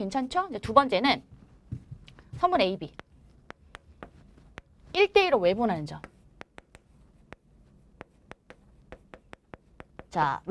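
A young woman speaks calmly and clearly, lecturing.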